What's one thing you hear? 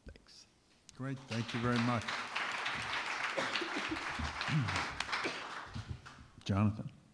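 A small audience applauds in a room.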